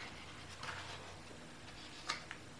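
A book page rustles as it turns.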